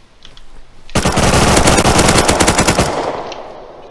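A rifle fires a rapid burst of shots that echoes away.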